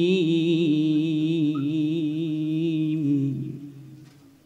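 A man chants in a long, melodic, wavering voice through a microphone, his voice echoing as it fades.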